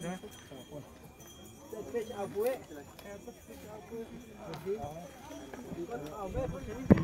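Several men talk nearby in a crowd outdoors.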